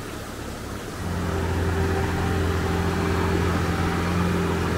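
An engine rumbles steadily nearby.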